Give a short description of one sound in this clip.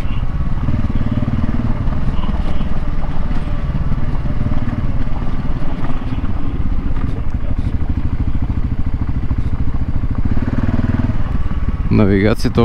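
Tyres crunch over loose gravel.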